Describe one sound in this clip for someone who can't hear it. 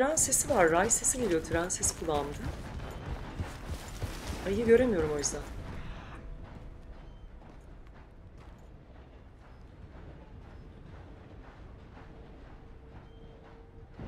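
A horse's hooves clop steadily as it walks.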